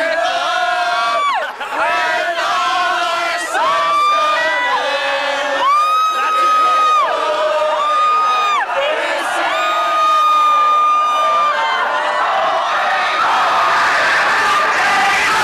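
A crowd of young men and women chants and shouts loudly, close by.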